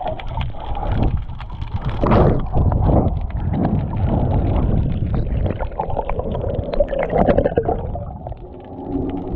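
Water gurgles and bubbles underwater, close by.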